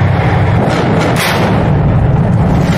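A tank cannon fires with a loud blast.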